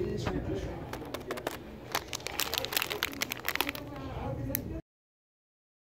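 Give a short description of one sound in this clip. A plastic snack wrapper crinkles as a hand squeezes it.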